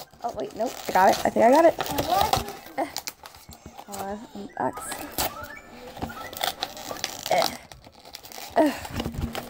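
A plastic-wrapped cardboard box crinkles and rustles as it is handled.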